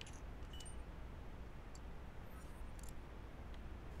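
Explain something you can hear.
Poker chips clink onto a table.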